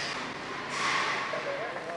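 A heavy truck's engine rumbles nearby.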